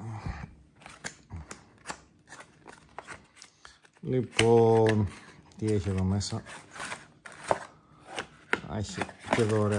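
Cardboard packaging rustles and taps as hands handle small boxes.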